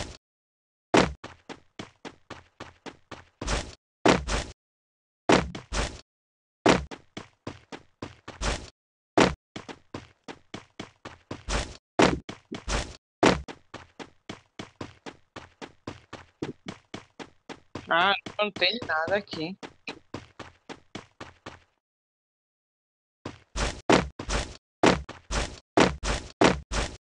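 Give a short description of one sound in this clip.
Footsteps thud quickly on grass and ground as a game character runs.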